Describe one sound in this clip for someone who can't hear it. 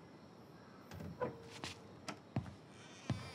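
A door creaks and clicks shut.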